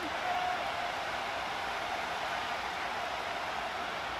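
A large crowd murmurs and cheers in a stadium.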